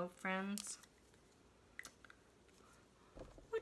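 Sheets of paper rustle softly under a hand.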